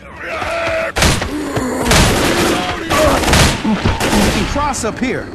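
A gun fires several times.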